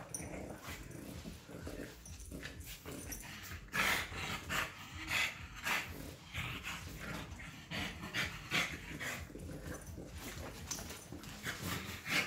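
Dog paws scuffle on a rug.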